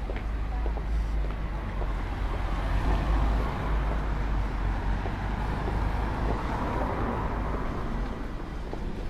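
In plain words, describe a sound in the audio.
Cars drive past on a city street.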